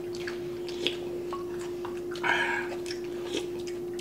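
A man slurps soup from a spoon.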